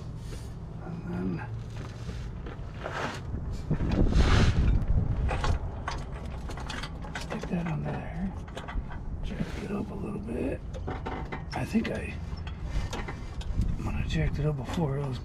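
A man talks nearby, calmly.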